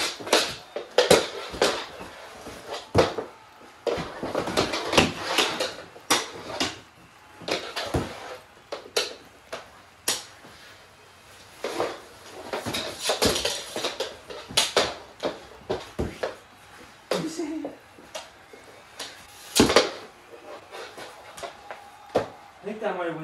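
Plastic hockey sticks clack against a small ball on a wooden floor.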